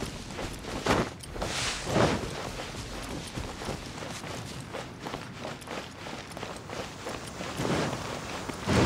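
Footsteps run quickly over grass and then stone.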